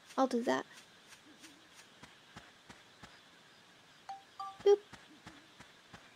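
Light footsteps patter quickly on grass.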